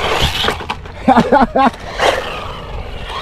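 A toy car lands with a clatter after a jump.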